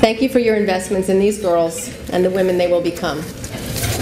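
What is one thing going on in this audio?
A young woman speaks calmly into a microphone in a large hall.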